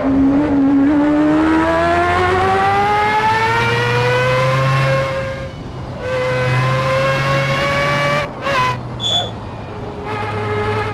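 A racing car engine revs high, rising in pitch as it speeds up and dropping as it shifts gear.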